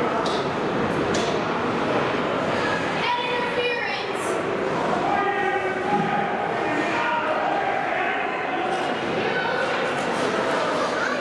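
Spectators shout and cheer from nearby.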